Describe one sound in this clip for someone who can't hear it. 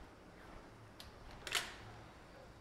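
A heavy door latch clicks sharply.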